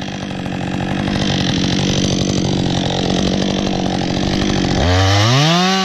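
A chainsaw cuts into wood with a loud whine.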